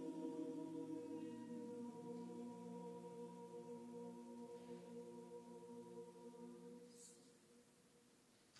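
A choir sings a long held chord in a large echoing hall.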